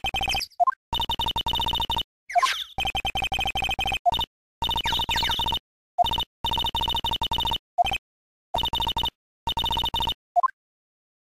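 Rapid electronic blips chatter in quick bursts.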